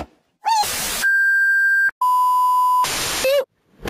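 A steady, high-pitched test tone beeps.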